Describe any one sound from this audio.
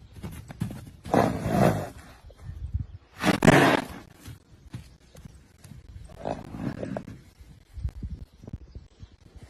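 Hooves thud on grass as a horse canters close by.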